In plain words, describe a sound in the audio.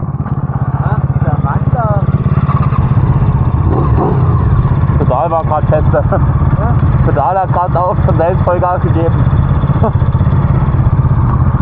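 A small dirt bike engine revs loudly nearby.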